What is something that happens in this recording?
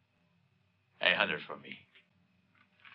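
A man speaks sharply nearby.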